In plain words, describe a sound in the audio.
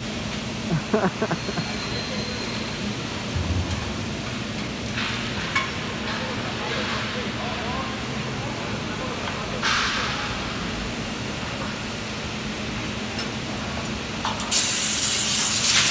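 Long metal profiles clatter as they are laid onto a wheeled cart.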